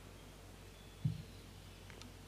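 A soft knock sounds as something is set down on a table.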